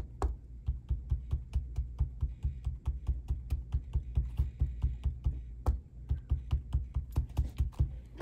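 A sponge tool dabs rapidly on paper with soft, quick thumps.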